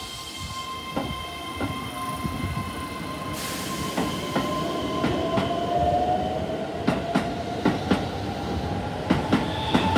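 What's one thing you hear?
Train wheels rumble and clack over rail joints.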